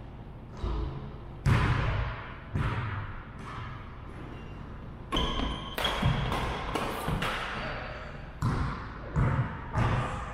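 Badminton rackets strike a shuttlecock, echoing in a large hall.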